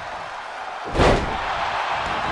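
A body slams hard onto a wrestling mat with a loud thud.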